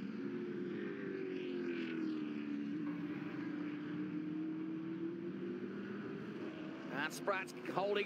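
Racing car engines roar and drone as the cars speed past.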